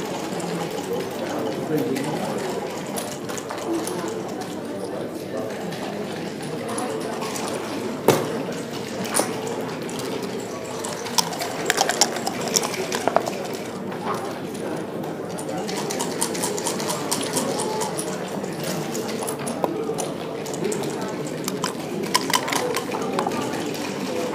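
Plastic game pieces click and slide on a wooden board.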